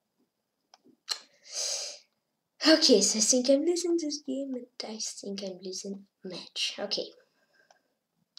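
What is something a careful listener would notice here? A boy speaks with animation into a nearby microphone.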